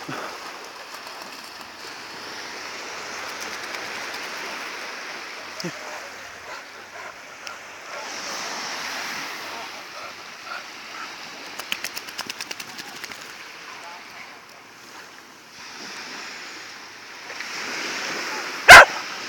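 Small waves wash gently onto a beach.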